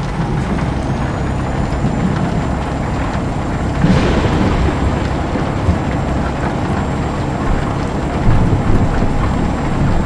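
Windscreen wipers swish across glass.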